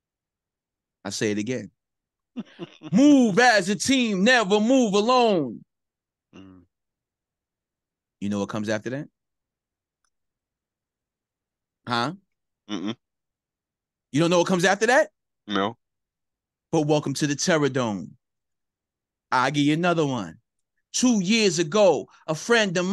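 A man talks with animation into a close microphone, in short bursts with pauses.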